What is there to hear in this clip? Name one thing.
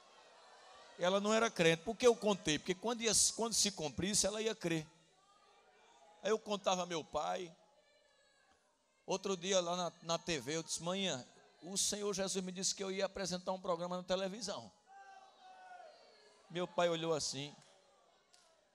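A man speaks with animation into a microphone through a loudspeaker in a large room.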